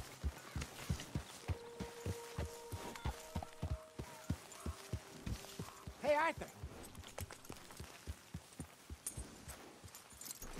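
A horse's hooves thud steadily on soft ground.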